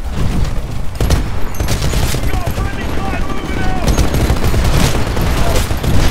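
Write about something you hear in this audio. A heavy gun fires rapid bursts.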